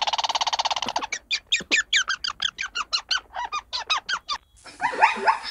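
A squirrel chatters with quick, high chirps.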